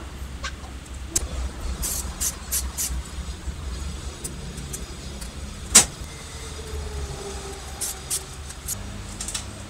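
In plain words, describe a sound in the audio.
Metal parts clink and tap against each other.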